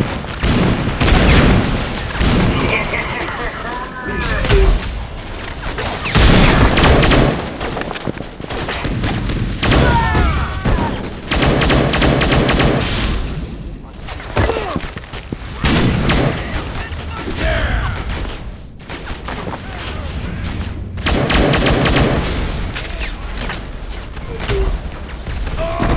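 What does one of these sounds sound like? Gunfire and blasts from a game crackle and boom almost without pause.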